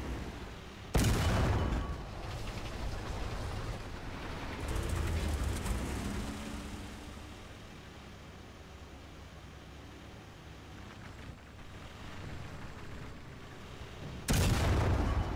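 A tank cannon fires with a loud, sharp boom.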